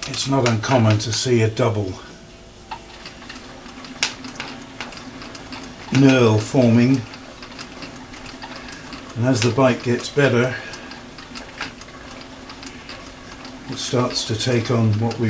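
A small machine whirs steadily with a low hum.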